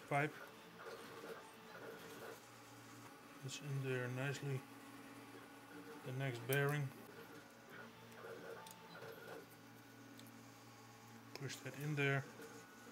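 Small metal screws click and clink.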